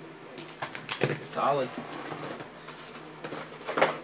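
A plastic pen taps down on a hard tabletop.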